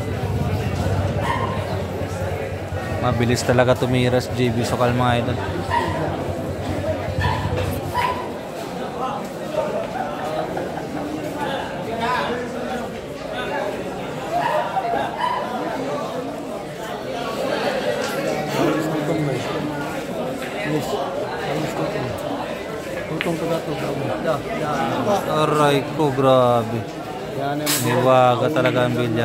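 A crowd of young men chatters nearby.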